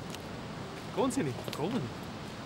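A man speaks briefly and warmly, close by.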